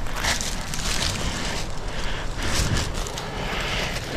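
A hand brushes through dry leaves and twigs.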